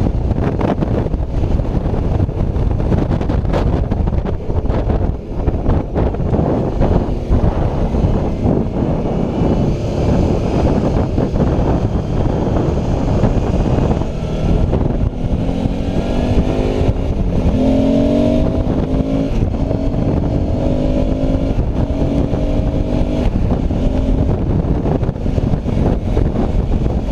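Wind roars loudly past a microphone on a moving motorcycle.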